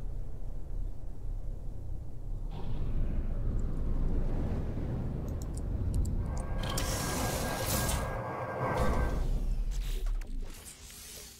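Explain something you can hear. A spaceship engine roars low and steady, then fades as the ship lands.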